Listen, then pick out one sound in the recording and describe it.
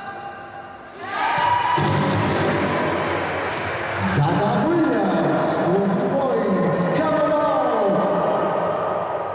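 A crowd in the stands cheers and shouts.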